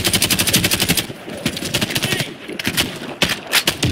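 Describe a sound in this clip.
A gun's magazine clicks and clatters during reloading.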